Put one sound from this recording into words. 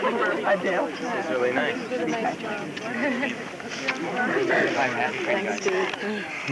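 A crowd of men and women chatter close by outdoors.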